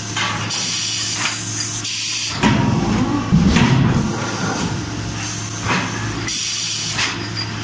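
Hydraulic machinery hums steadily.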